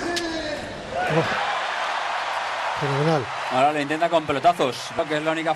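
A crowd cheers and applauds in a large arena.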